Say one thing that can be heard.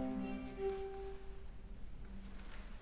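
A violin plays a sustained final note in a large echoing hall.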